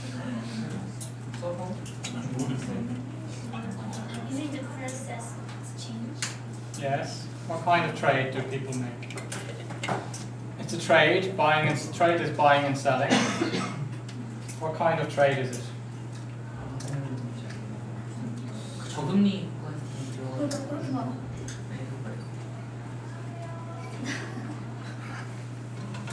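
A man lectures through a microphone, pausing often.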